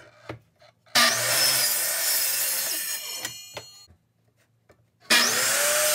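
A power saw motor whirs loudly, spinning up twice with a short pause between.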